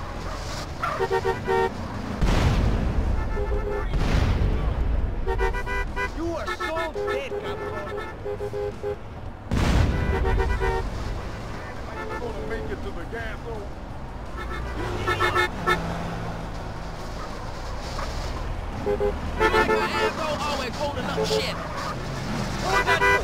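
Car horns honk in short repeated blasts.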